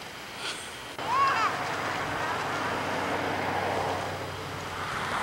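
A sled scrapes across snow as it is pulled closer.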